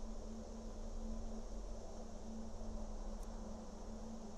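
A short soft click sounds as a menu choice changes.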